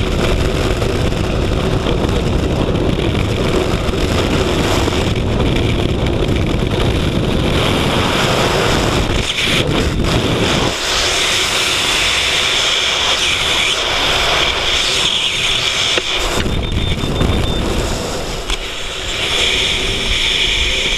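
Strong wind roars and buffets loudly outdoors.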